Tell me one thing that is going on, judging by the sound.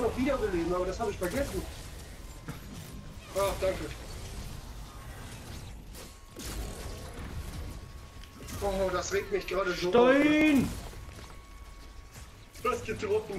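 Energy blasts crackle and boom in a fight.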